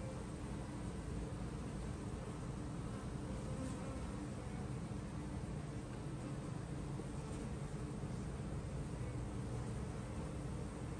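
Bees buzz steadily close by.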